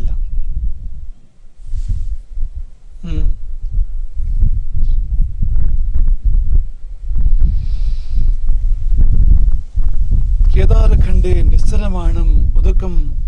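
A man speaks calmly into a microphone outdoors in wind.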